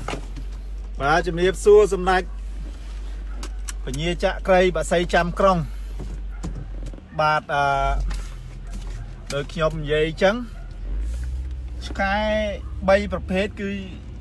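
A young man talks animatedly close by.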